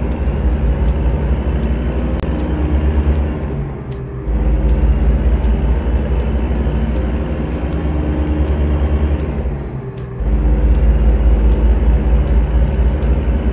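A heavy truck engine rumbles deeply, dipping briefly as the gears change.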